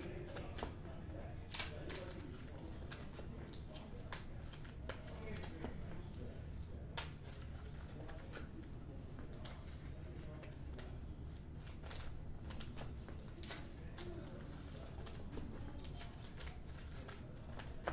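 Plastic wrappers crinkle and rustle as they are handled.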